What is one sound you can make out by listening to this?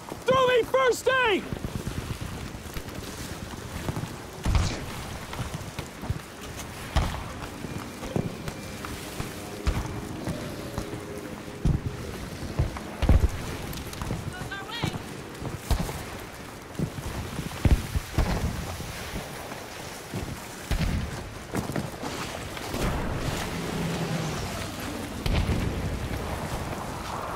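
Gunshots crack and boom in sharp bursts nearby and far off.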